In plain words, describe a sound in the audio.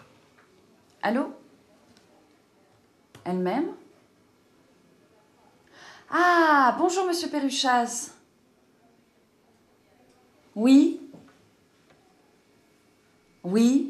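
A young woman speaks calmly into a phone, close by, with pauses.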